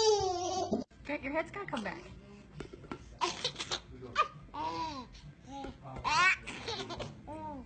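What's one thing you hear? A baby giggles and squeals close by.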